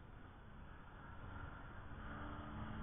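A race car engine drones in the distance.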